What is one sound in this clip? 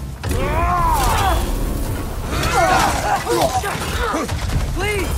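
Weapons swing and strike in a close fight.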